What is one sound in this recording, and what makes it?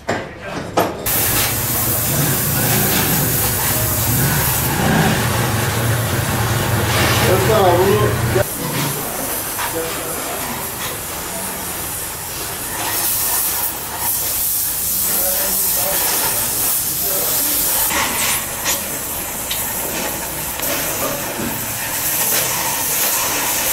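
A gas torch roars and hisses steadily.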